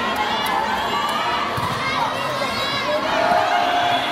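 A volleyball thumps as a player bounces it.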